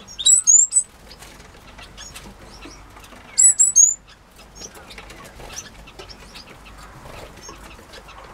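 Small finches chirp and twitter busily nearby.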